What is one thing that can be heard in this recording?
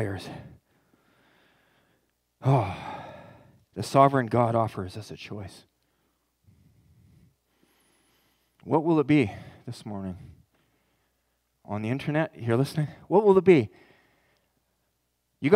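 A man speaks calmly through a microphone in a large room, pausing between phrases.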